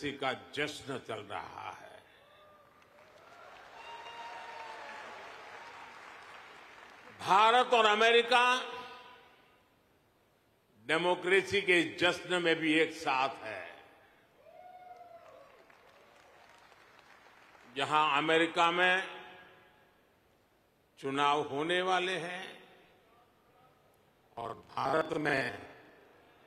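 An elderly man speaks with animation into a microphone, in short bursts, in a large echoing hall.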